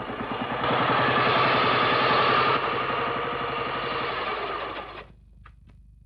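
A motorcycle engine rumbles loudly as the motorcycle rides up, then cuts off.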